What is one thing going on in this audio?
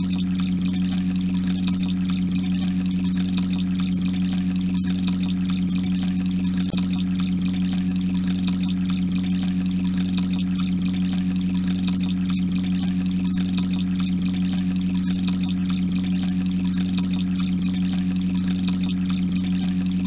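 Water bubbles steadily in an aquarium.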